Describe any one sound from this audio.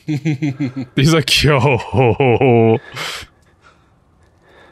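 Men laugh together.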